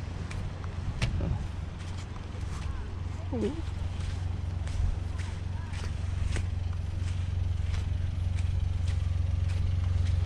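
A small off-road car's engine hums as it drives slowly over sand.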